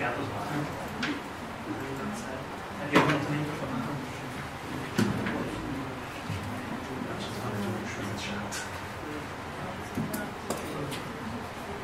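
A young man talks quietly near a microphone.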